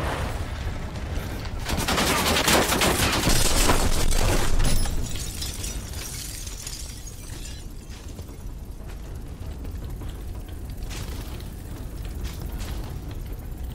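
Flames crackle on a burning vehicle.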